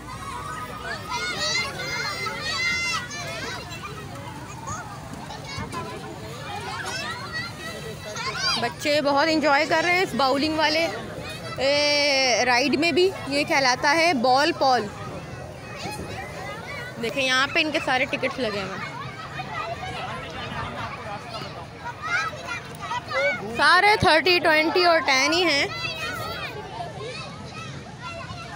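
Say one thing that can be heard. Children shout and squeal nearby.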